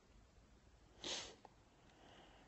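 A middle-aged man sighs heavily.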